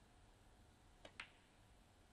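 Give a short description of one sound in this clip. A snooker cue tip strikes the cue ball with a sharp tap.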